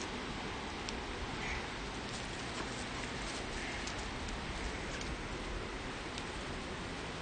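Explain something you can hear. Wooden hive frames knock and scrape against a box.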